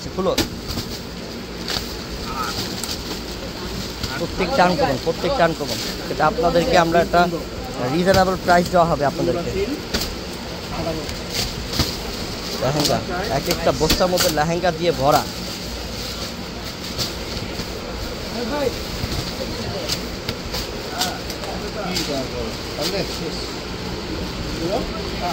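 A blade slices through packing tape and plastic.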